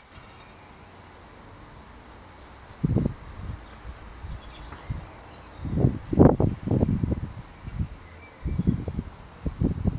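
A metal pick scrapes and clicks against a bicycle hub bearing.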